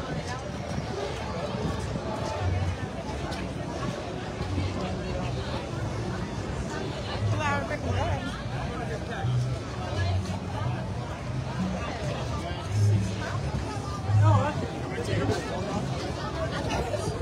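A crowd chatters outdoors all around.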